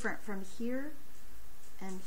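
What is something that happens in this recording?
A finger taps a calculator key.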